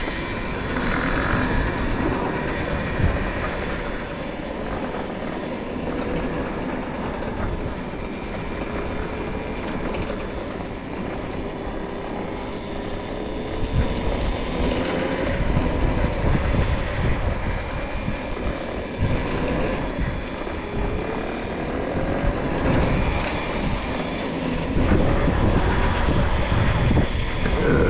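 Tyres roll over a rough path.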